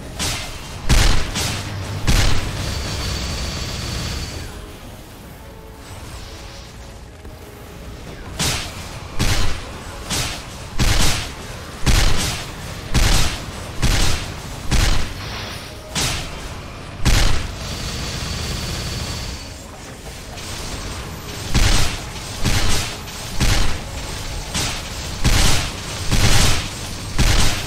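Magic attacks boom and crash in repeated bursts.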